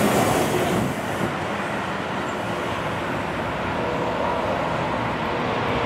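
A diesel engine of a backhoe loader rumbles steadily nearby.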